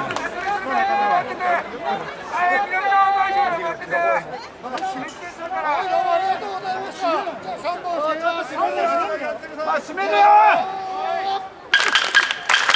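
A man calls out loudly through a loudspeaker.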